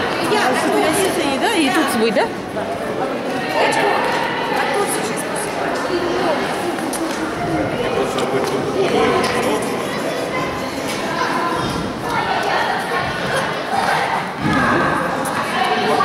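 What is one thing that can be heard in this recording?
Children and adults chatter in a large echoing hall.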